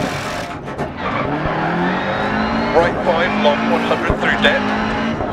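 A rally car engine roars and revs up through the gears.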